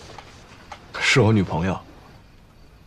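An elderly man speaks, close by.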